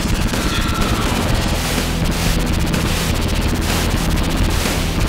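Rapid explosions boom and crackle from a video game.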